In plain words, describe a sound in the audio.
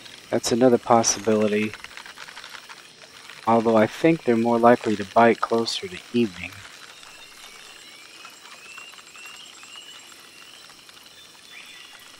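A hooked fish splashes at the water's surface.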